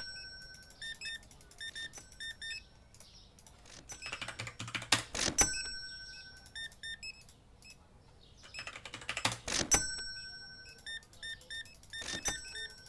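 A checkout scanner beeps in quick short bursts.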